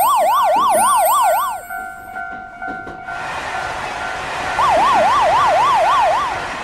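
A level crossing bell rings in steady repeated dings.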